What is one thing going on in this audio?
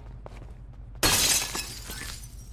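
Glass shatters loudly as a display case is smashed.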